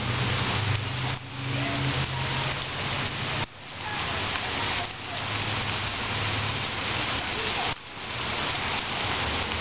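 Steady rain patters on pavement outdoors.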